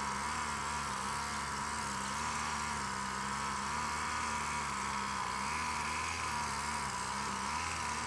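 Bees buzz steadily in a dense swarm close by.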